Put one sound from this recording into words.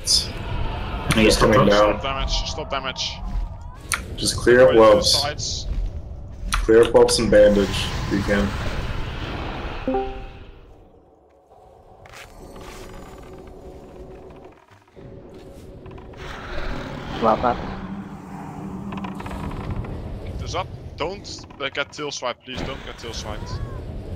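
Weapons clash and spells burst in a fantasy battle.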